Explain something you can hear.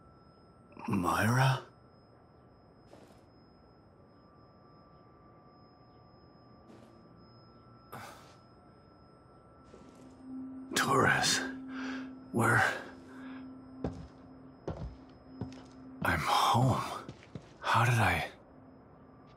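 A man speaks in a weak, hesitant voice, close by.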